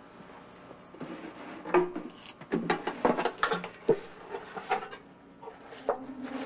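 A wooden box clicks and rattles as it is opened and handled.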